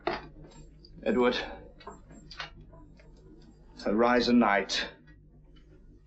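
A man answers calmly.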